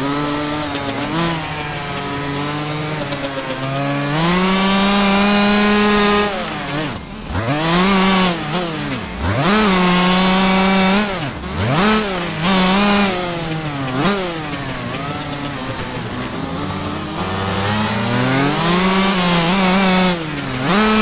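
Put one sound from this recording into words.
A motocross engine revs up and down with a loud whine.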